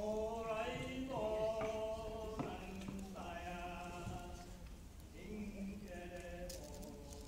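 A woman sings in a large hall.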